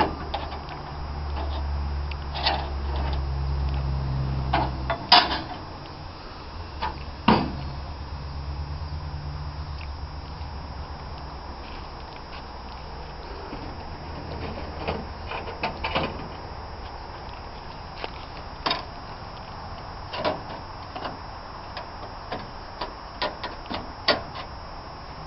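Metal blades clink and scrape against each other as they are handled.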